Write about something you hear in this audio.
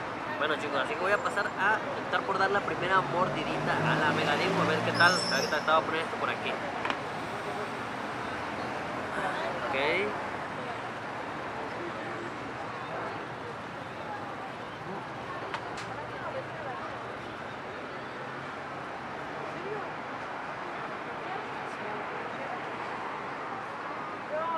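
A steady murmur of street noise carries on outdoors in the background.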